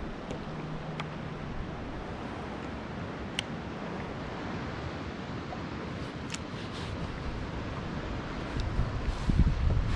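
Water laps gently against a kayak's hull.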